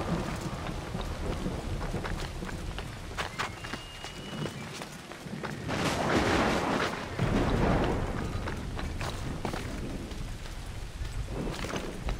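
Footsteps patter on roof tiles.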